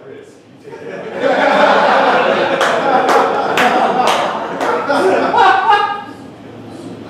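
An audience laughs and applauds.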